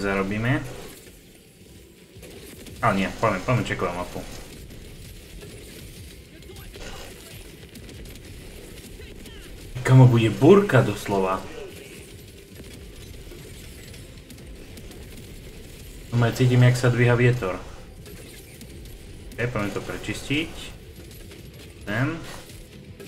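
Gunfire and explosions from a video game crackle steadily.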